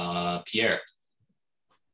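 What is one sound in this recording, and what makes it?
A young man speaks briefly into a microphone close by.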